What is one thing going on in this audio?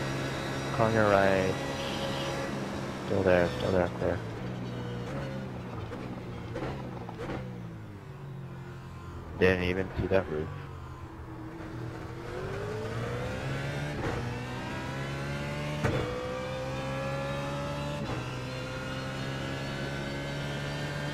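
A racing car engine roars, dropping and rising in pitch as it revs up and down through the gears.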